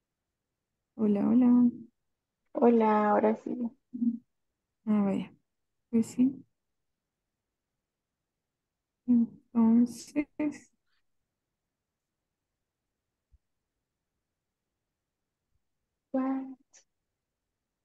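A young woman speaks calmly over an online call, with pauses.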